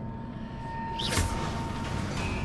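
A magical whoosh sweeps past.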